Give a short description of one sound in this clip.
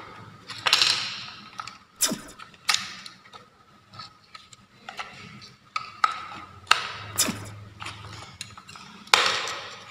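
Plastic clicks and rattles as a battery is handled and fitted into a device.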